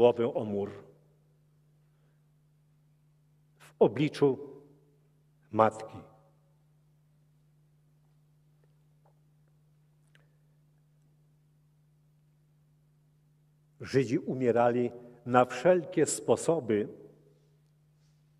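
An elderly man speaks calmly into a microphone, heard through loudspeakers, with long pauses.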